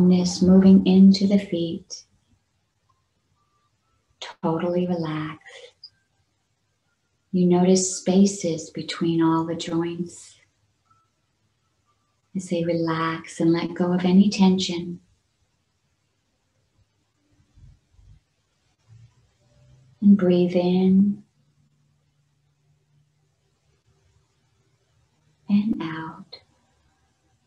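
A middle-aged woman speaks calmly in short phrases with pauses, heard close through an online call.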